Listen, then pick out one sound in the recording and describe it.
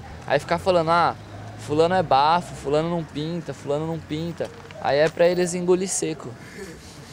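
A young man speaks animatedly, close by.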